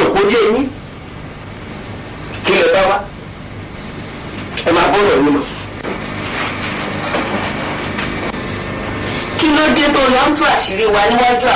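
A man speaks loudly and emotionally, in short bursts.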